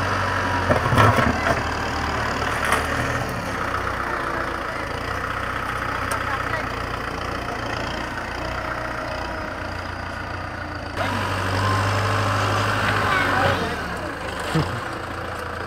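A tractor blade scrapes and pushes loose dirt.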